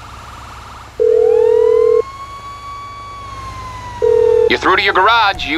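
A phone rings with a steady electronic calling tone.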